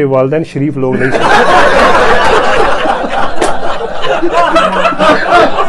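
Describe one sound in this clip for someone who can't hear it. A group of men laugh loudly together.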